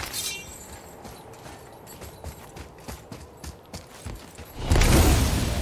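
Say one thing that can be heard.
Heavy footsteps thud and splash.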